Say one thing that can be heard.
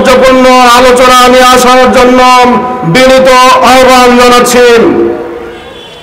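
A man chants in a drawn-out, melodic voice through a loudspeaker.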